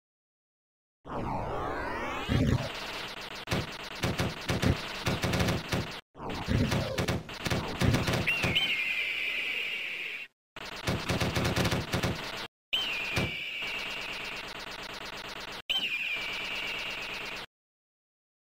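Upbeat arcade game music plays.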